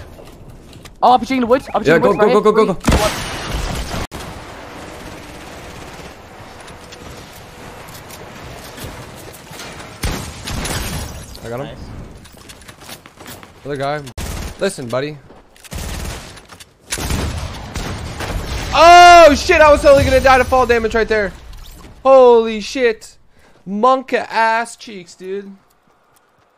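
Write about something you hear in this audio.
A young man talks excitedly into a microphone.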